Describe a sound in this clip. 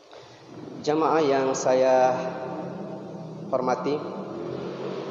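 A young man chants in a melodic voice through a microphone, in an echoing room.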